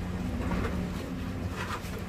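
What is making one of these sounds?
A trowel scrapes and taps on concrete blocks.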